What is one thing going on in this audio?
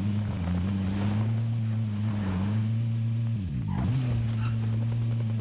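A car engine drones steadily, dips briefly, then surges back.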